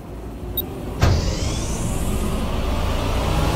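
A heavy hatch door slides open with a hiss.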